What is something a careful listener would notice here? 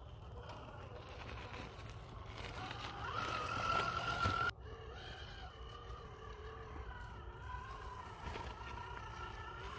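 Plastic tyres crunch and scrape on loose stones.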